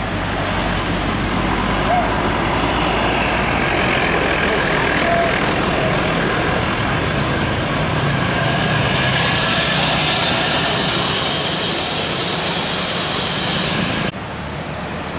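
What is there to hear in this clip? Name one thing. A bus engine roars as the bus climbs a steep bend.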